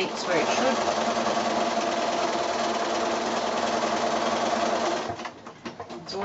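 A sewing machine runs steadily with a whirring hum.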